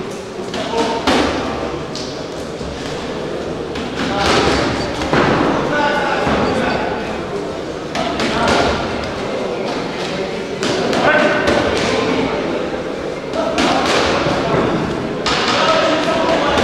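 Boxing gloves thud against bodies.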